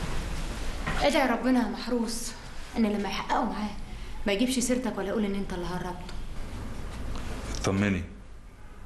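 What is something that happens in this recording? A woman speaks urgently nearby.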